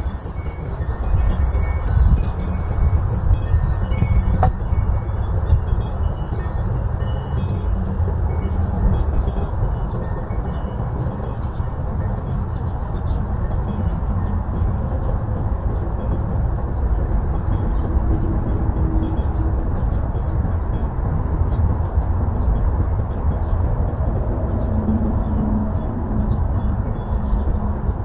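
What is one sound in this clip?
Dry leaves rustle in the wind.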